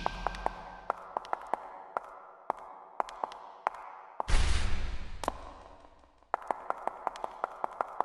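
Small marbles click and clack as they roll along a track.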